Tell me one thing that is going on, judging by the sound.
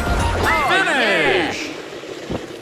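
A game's finish jingle plays with bright falling tones.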